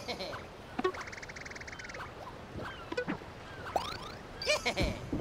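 Cheerful video game sound effects chime and bleep.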